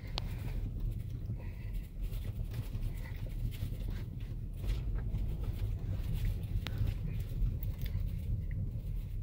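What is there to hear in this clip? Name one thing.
A car engine rumbles low and steady, heard from inside the car.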